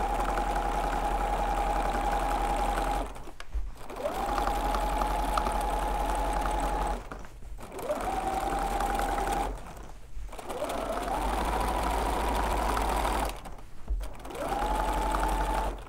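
A sewing machine whirs steadily in bursts, stopping briefly and starting again.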